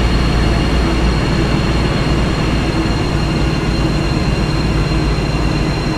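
Train wheels roll along the rails.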